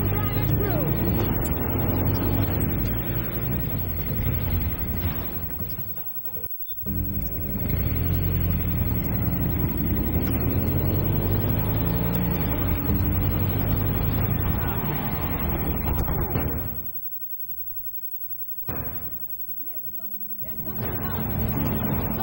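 A motorcycle engine roars at speed.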